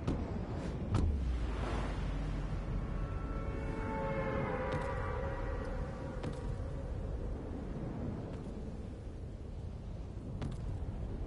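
Wind rushes loudly and steadily past a falling character.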